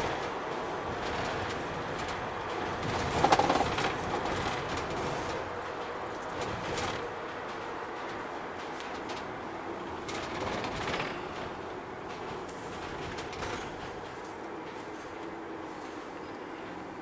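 A van engine hums steadily while driving.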